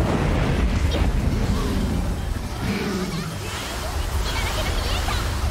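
Explosions and spell effects rumble and crackle in a video game battle.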